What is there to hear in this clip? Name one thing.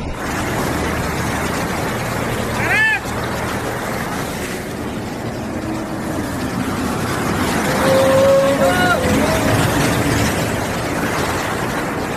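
A vehicle drives through deep water, splashing loudly.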